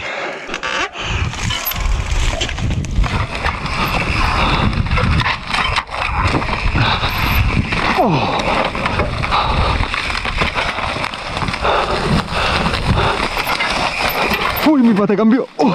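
Bicycle tyres rumble and crunch over dirt and leaves.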